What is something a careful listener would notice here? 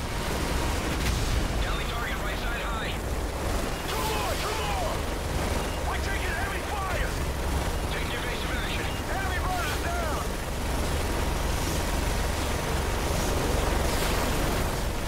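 A heavy machine gun fires in rapid, rumbling bursts.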